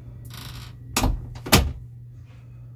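A wooden door knocks and creaks as it is pushed.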